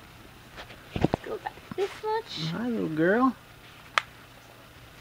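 Snap buttons click shut on a cloth diaper.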